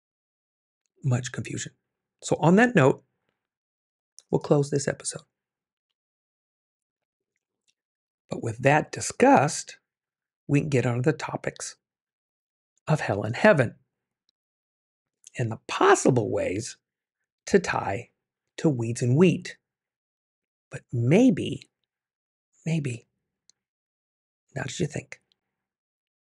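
A middle-aged man speaks with animation into a close microphone, in short bursts with pauses.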